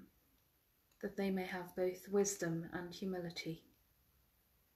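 A middle-aged woman speaks calmly and softly, close to the microphone, then falls silent.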